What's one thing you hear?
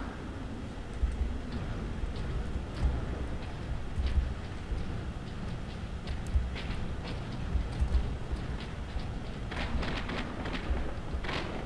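Heavy armoured footsteps thud steadily.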